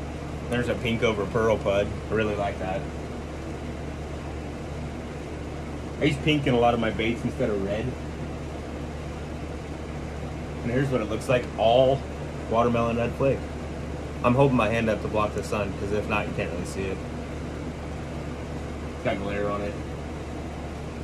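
A man talks with animation close to the microphone.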